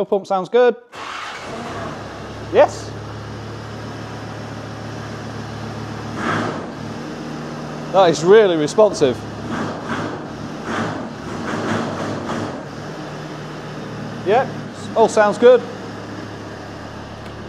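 A diesel engine starts and idles steadily in an enclosed room.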